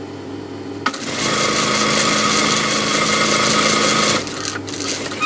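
A sewing machine whirs steadily as it stitches.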